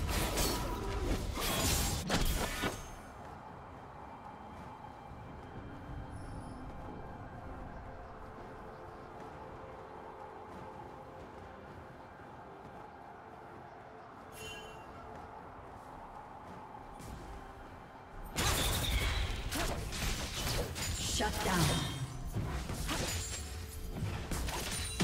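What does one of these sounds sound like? Magic blasts and blows crash loudly in a fight.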